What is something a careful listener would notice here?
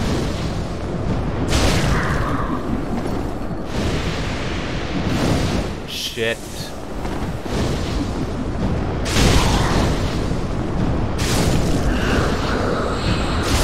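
Fireballs burst with a loud roaring whoosh.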